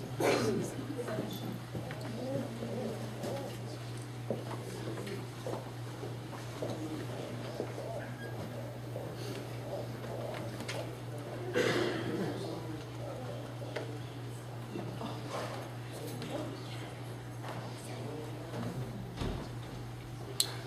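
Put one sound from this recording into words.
A small audience murmurs quietly in a room.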